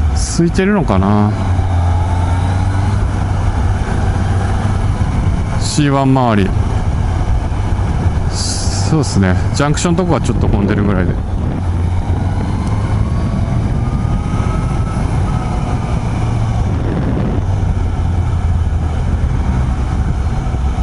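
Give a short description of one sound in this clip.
A motorcycle engine hums steadily at low pitch.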